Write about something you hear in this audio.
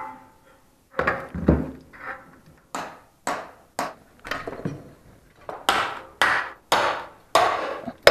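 A hammer strikes a chisel into a wall in sharp, repeated knocks.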